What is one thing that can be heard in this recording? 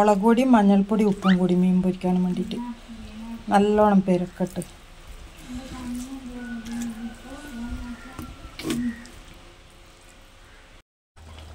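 Hands rub spice paste onto raw fish with soft, wet squelches.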